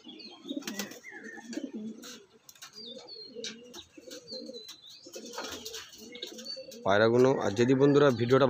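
Pigeons coo softly and steadily.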